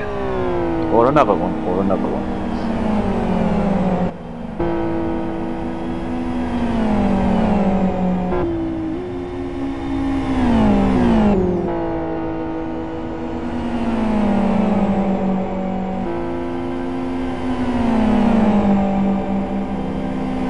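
Racing car engines roar loudly, their pitch falling and rising with each gear change.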